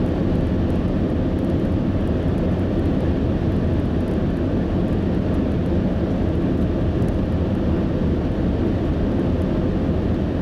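Tyres roar steadily on a paved road.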